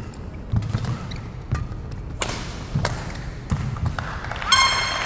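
A shuttlecock is struck sharply back and forth by rackets.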